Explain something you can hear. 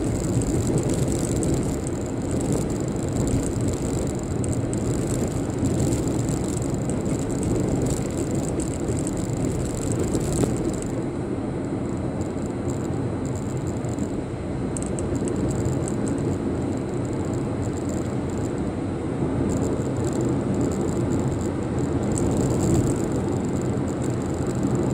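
Road noise rumbles inside a car driving on asphalt.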